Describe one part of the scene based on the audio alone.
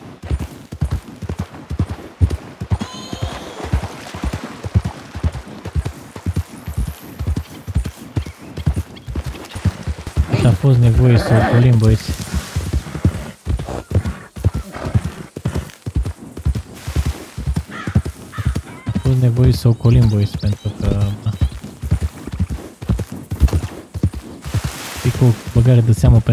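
A horse's hooves thud steadily at a trot.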